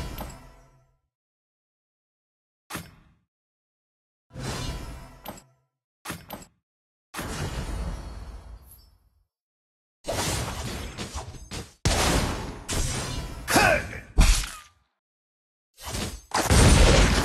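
Game spell effects whoosh and crash in short, sudden bursts.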